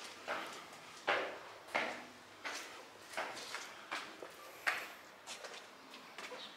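Footsteps climb stone steps outdoors.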